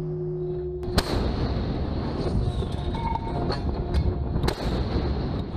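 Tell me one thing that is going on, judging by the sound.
A large naval gun fires with a heavy boom.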